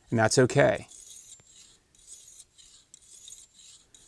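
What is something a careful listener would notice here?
A sharpening stone scrapes lightly along a blade.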